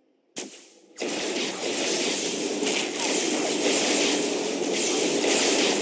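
Loud magical blasts and impacts crackle in a heavy skirmish.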